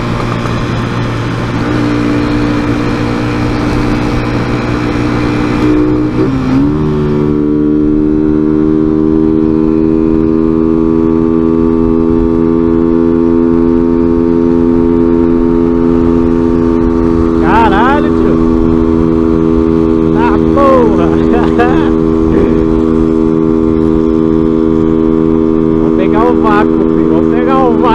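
A motorcycle engine drones steadily and shifts pitch once as it changes gear.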